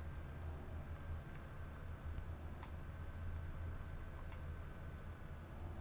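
A tractor engine rumbles low and steady.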